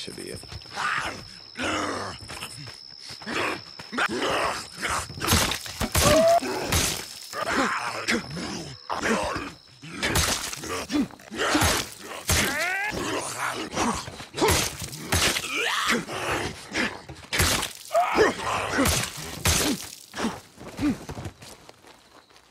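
A knife stabs into flesh again and again with wet thuds.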